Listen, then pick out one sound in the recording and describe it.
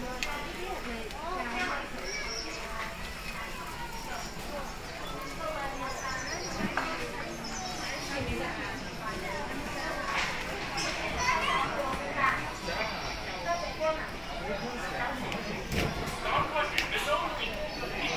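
A crowd of shoppers murmurs and chatters in the background.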